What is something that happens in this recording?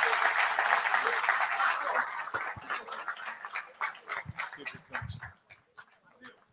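A large crowd applauds loudly, then the clapping fades.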